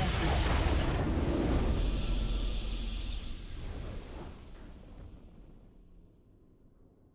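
A triumphant victory fanfare swells and then fades away.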